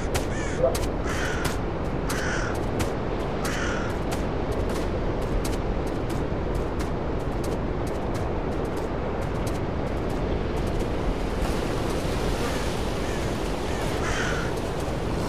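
Wind blows steadily through trees outdoors.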